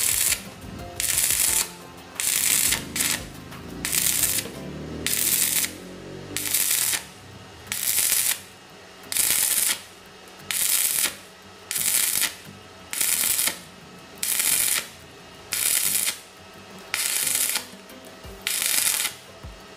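An electric welding arc crackles and hisses in short, regular bursts.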